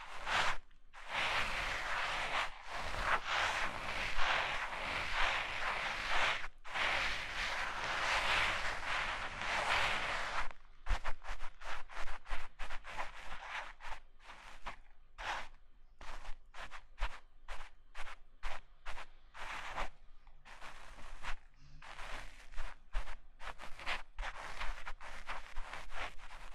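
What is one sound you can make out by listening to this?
A young woman whispers close to a microphone.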